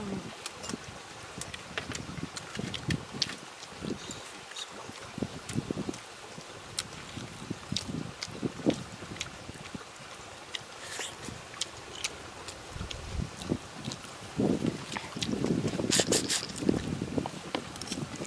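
A man chews food loudly with his mouth open, close by.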